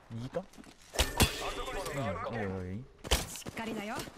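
A bow twangs sharply as arrows are loosed.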